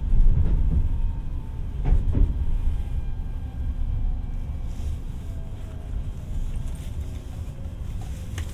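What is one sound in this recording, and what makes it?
Train brakes squeal softly as the train slows.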